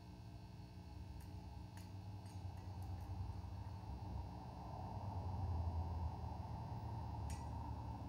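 Knobs click on electronic equipment.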